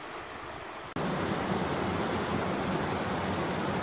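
A shallow river rushes loudly over rocks.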